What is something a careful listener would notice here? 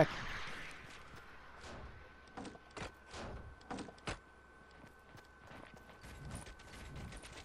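Wooden walls are built with quick clicks and thuds.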